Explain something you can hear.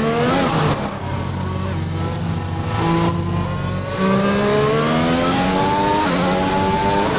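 A racing car engine whines, dropping in pitch as it slows and rising as it accelerates through the gears.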